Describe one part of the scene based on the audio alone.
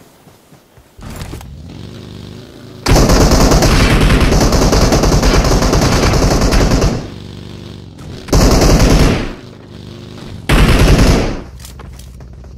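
A small off-road buggy engine roars and revs loudly.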